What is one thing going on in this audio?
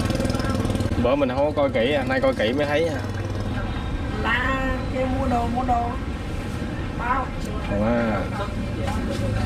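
A woman talks nearby in a lively voice.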